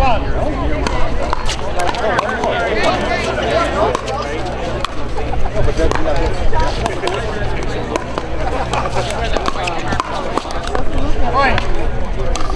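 A pickleball paddle strikes a hard plastic ball with sharp pops.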